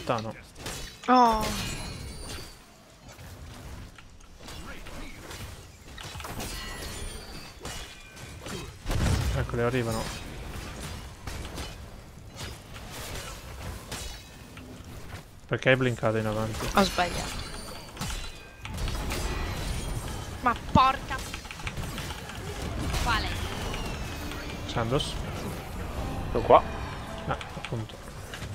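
Battle sound effects clash and blast in a video game.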